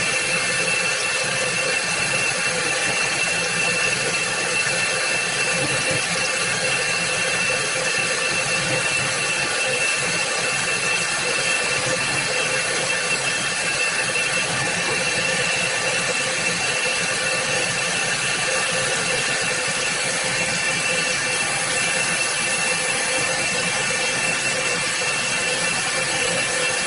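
Coolant sprays and splashes onto the workpiece.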